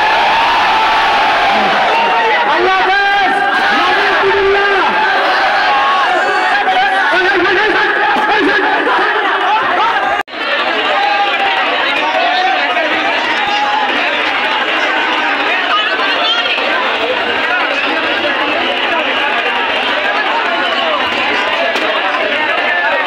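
A large crowd of young men shouts and cheers loudly outdoors.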